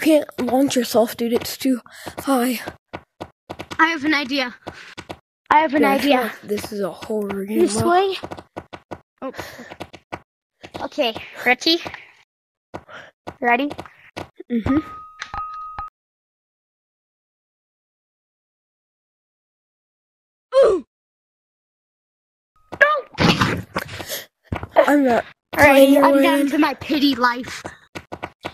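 A young person talks with animation over an online voice chat.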